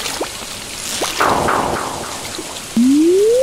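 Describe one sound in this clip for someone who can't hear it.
A fish splashes out of the water.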